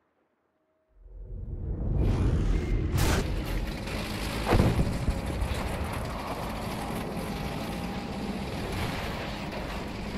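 A tank engine rumbles and clanks close by.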